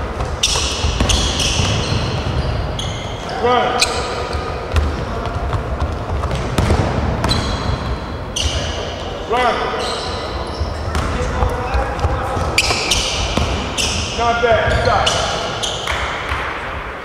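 A basketball bounces loudly on a wooden floor in a large echoing hall.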